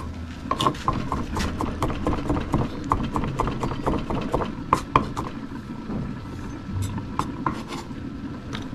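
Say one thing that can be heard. A knife chops garlic on a wooden board with quick, sharp knocks.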